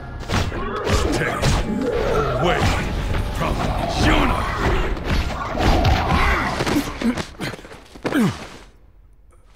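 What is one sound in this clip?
Blades slash and strike rapidly in a loud fight.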